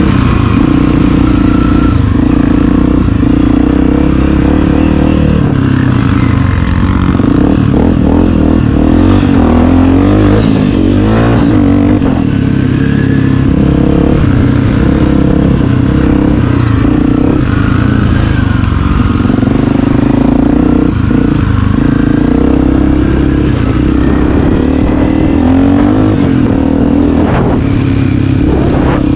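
A dirt bike engine roars up close, revving up and down.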